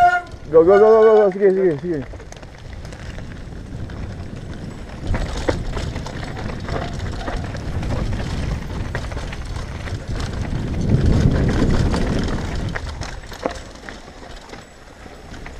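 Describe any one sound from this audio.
Bike tyres crunch and roll over loose gravel and dirt.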